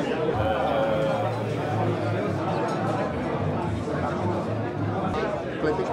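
Two men talk with each other up close.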